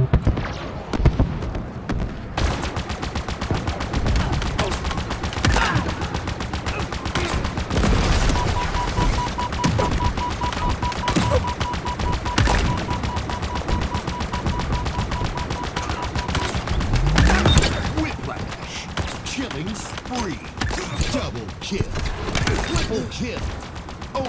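Gunshots and explosions crack and boom in quick bursts.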